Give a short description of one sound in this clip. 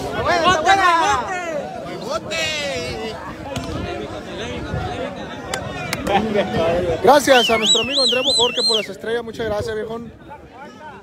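A man close by shouts with excitement.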